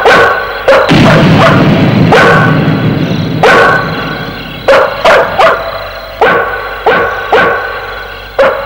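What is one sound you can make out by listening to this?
A dog barks loudly again and again.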